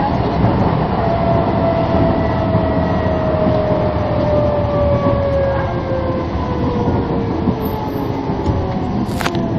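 A bus motor whines and slowly drops in pitch as the bus slows down.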